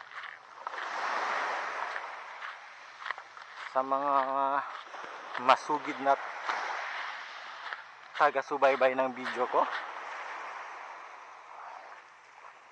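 Small waves wash gently onto a pebble shore.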